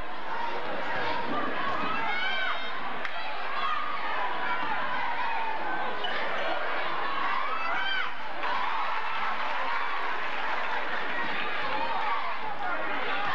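A large crowd chatters and cheers steadily in an echoing gym.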